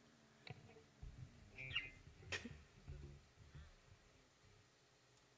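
A bass guitar thumps a few low notes.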